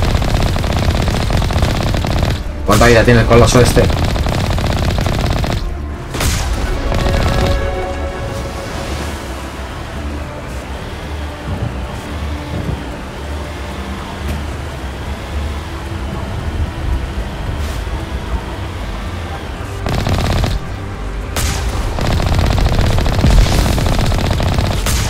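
A vehicle engine hums steadily as it drives through water.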